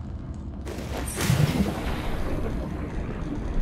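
Water splashes loudly as a diver plunges in.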